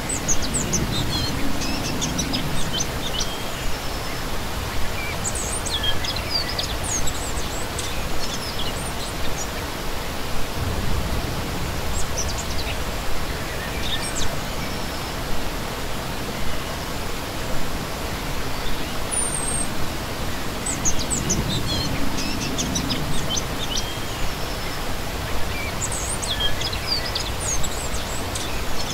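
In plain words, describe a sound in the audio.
A shallow stream rushes and splashes steadily over rocks.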